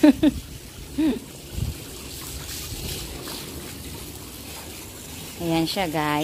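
Water splashes gently as a small child sits in it.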